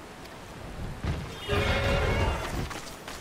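A large winged creature swoops in with a loud rushing roar.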